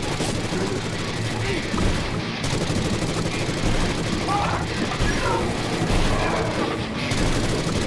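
Monsters growl and groan.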